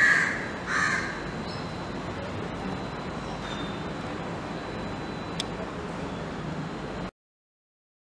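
Outdoor city noise hums steadily.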